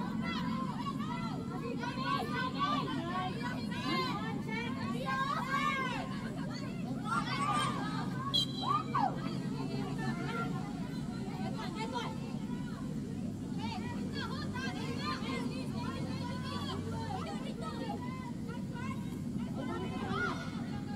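Young women shout and call out to each other across an open outdoor field.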